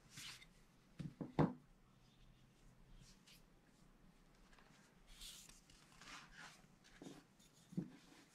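Pages of a book rustle as hands turn them.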